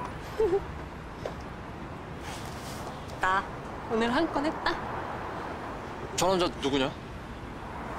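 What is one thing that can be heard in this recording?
A young woman speaks softly and emotionally, close by.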